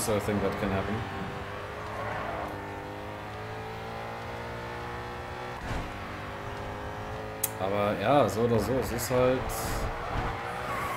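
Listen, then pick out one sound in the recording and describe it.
A racing car engine roars steadily as it speeds up.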